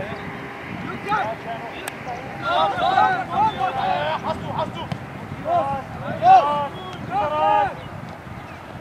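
Teenage boys shout to each other across an outdoor football pitch.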